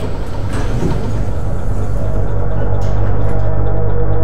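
A door creaks slowly open.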